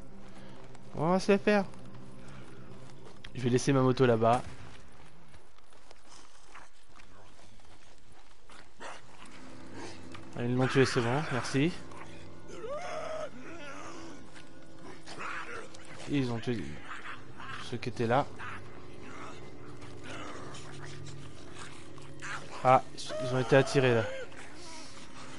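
A young man talks in bursts into a close headset microphone.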